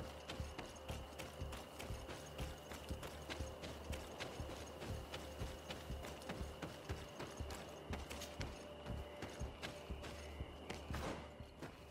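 Quick footsteps thud on a dirt path as someone runs.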